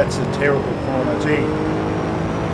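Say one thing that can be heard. A race car engine drops in pitch as gears shift.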